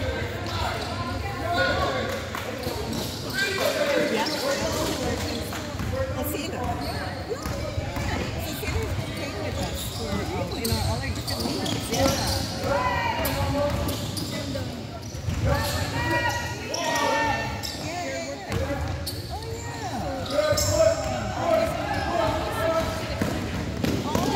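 Children and adults shout and chatter across an echoing gym.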